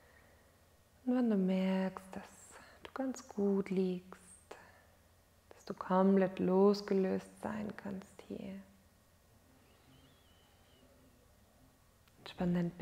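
A woman speaks slowly and calmly into a close microphone, with long pauses.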